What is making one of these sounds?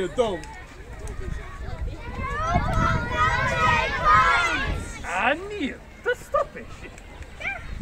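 A young man talks calmly to a group of children.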